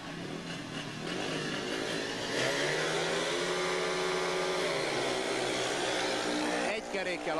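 Motorcycle engines rev and roar loudly.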